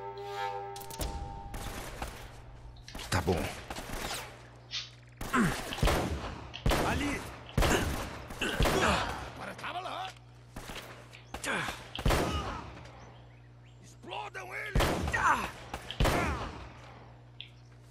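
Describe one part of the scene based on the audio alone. A pistol fires repeatedly in sharp, loud shots.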